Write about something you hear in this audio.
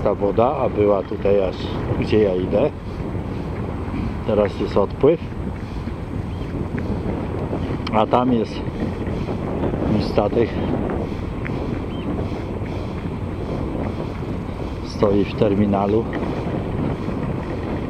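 Wind buffets the microphone outdoors with a steady low rumble.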